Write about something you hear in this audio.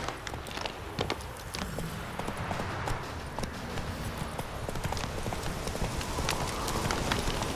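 A horse gallops with quick, heavy hoofbeats.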